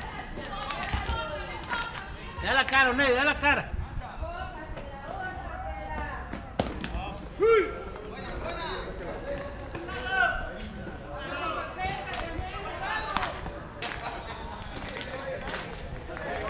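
Men call out and chatter across an open field.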